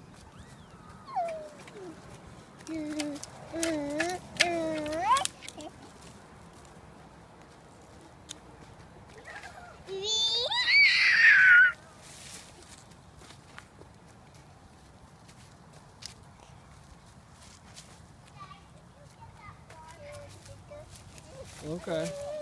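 A small boy babbles and calls out close by.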